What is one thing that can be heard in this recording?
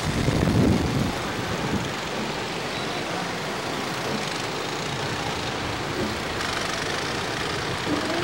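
Wind roars steadily past riders on a fast ride.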